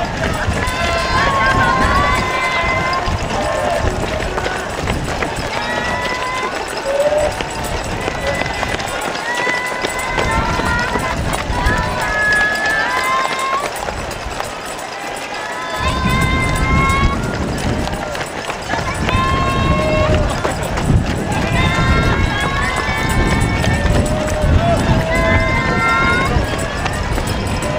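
A crowd of nearby spectators cheers and shouts encouragement outdoors.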